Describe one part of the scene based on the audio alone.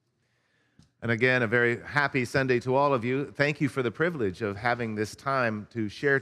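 An older man speaks calmly and warmly close to a microphone.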